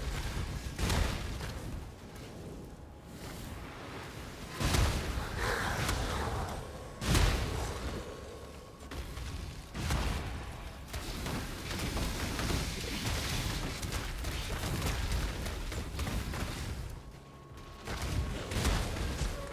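Explosions boom and crackle again and again.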